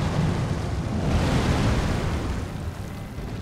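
Rocks burst and scatter with loud rumbling.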